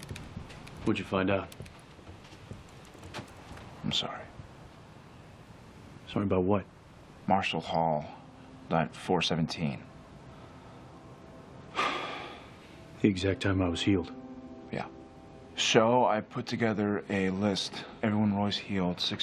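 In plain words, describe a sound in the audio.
A second young man answers in a low, serious voice.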